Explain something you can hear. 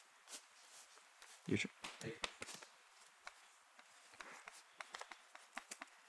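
Cards slap softly onto a table.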